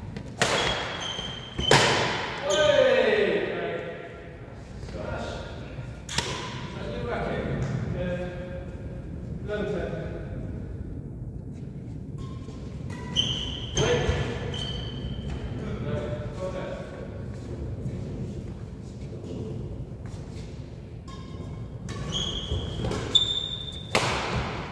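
Sports shoes squeak sharply on a wooden floor.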